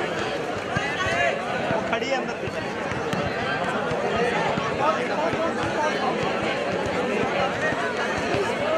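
A crowd chatters and cheers outdoors.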